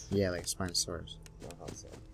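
A young man speaks into a headset microphone.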